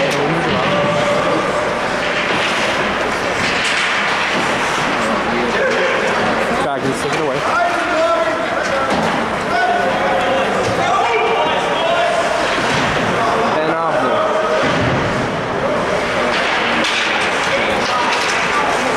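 A crowd of spectators talks and cheers in a large echoing rink.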